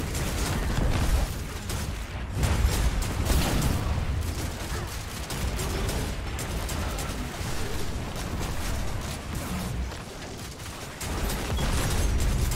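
Explosions boom with deep rumbling.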